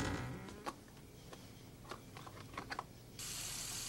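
A cardboard box clicks and rustles as it is handled.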